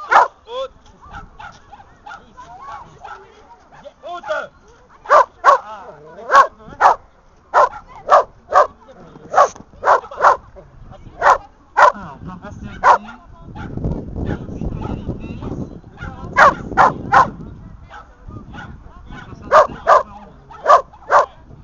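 A dog barks sharply and repeatedly nearby.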